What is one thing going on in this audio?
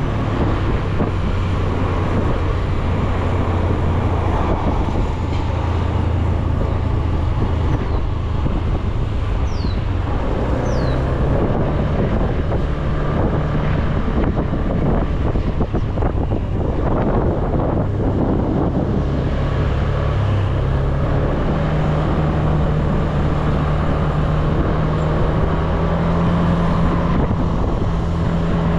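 Wind rushes past a riding scooter.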